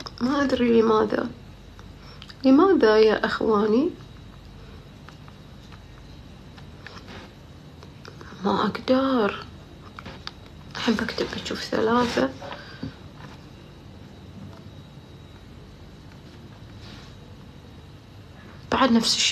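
A young woman speaks calmly into a nearby phone microphone, in short bursts.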